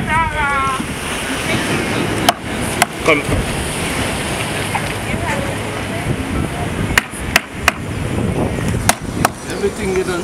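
A large knife chops through fish on a hard board with sharp knocks.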